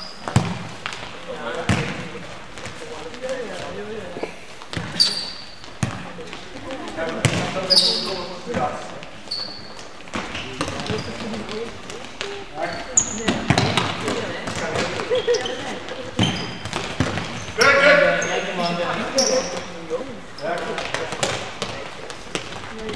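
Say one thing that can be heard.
Men shout to each other at a distance across an echoing hall.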